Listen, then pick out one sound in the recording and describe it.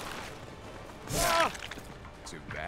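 A blade swishes and strikes flesh with a wet thud.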